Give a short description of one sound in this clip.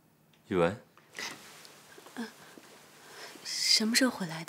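A young woman speaks softly and brightly, close by.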